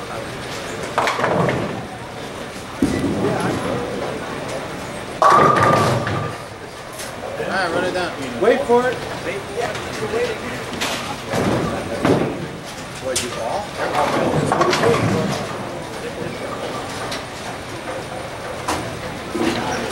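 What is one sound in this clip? Bowling sounds echo through a large hall.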